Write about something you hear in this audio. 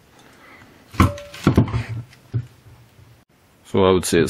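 A heavy metal object thuds down onto a wooden table.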